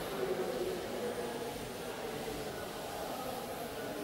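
A duster rubs against a chalkboard.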